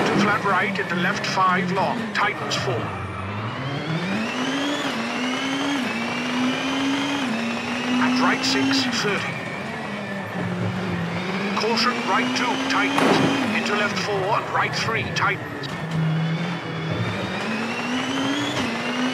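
A rally car engine revs hard, rising and dropping as the gears change.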